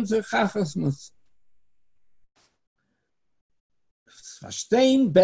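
An elderly man speaks calmly through an online call, pausing between phrases.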